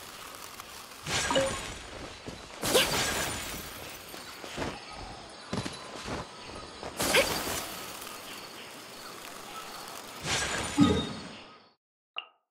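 Icy magic bursts with a sharp whoosh and chime.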